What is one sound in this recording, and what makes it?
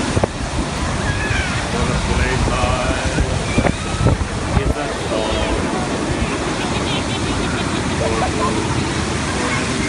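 Surf crashes and rushes onto the shore steadily.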